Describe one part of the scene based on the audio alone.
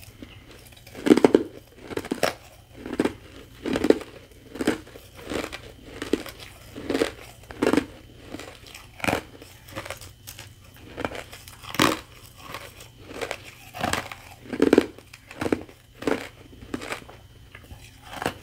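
Shaved ice crunches and crackles loudly close up as a woman bites and chews it.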